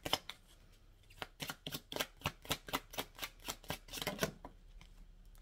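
Playing cards riffle and snap quickly as they are shuffled.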